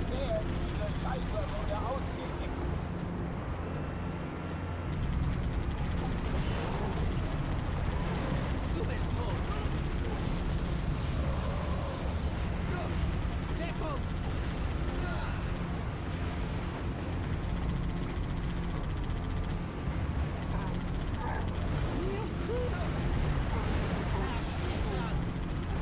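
A mounted machine gun fires in rapid bursts.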